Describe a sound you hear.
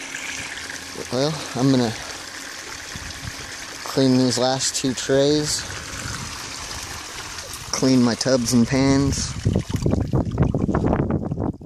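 Water trickles and splashes steadily close by.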